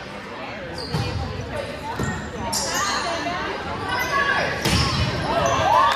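A volleyball is struck with a thud.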